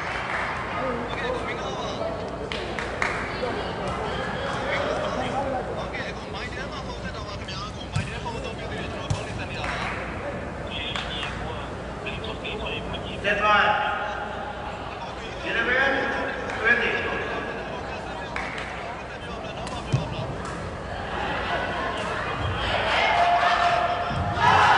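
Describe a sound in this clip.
A crowd in a large echoing hall murmurs and cheers.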